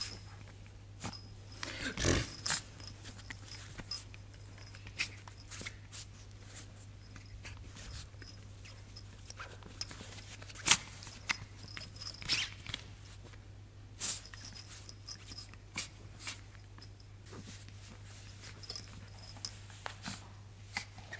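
A fabric blanket rustles close by.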